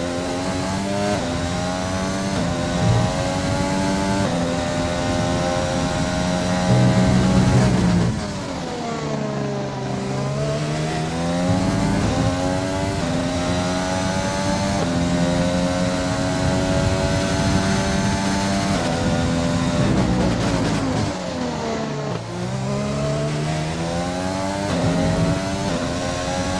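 A racing car engine screams at high revs, shifting up through the gears and dropping in pitch under braking.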